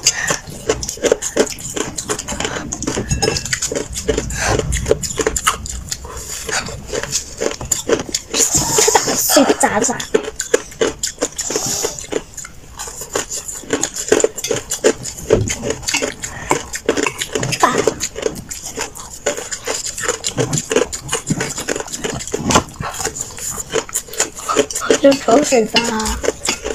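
A young woman crunches ice loudly while chewing close by.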